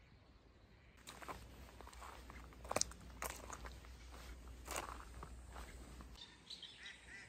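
Footsteps crunch slowly on gravel.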